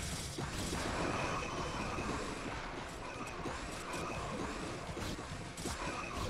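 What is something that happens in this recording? Video game battle sounds crackle and hiss with rapid bursts.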